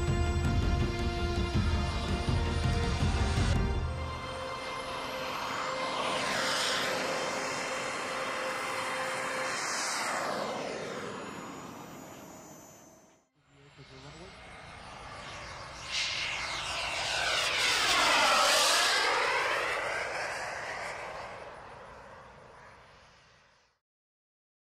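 A jet engine roars loudly as an aircraft sweeps past overhead, its pitch falling as it goes.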